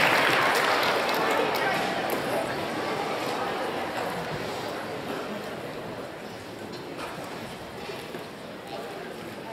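A band of brass and woodwind instruments plays in a large echoing hall, slowly fading.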